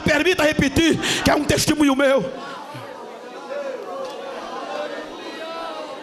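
A crowd murmurs and prays aloud.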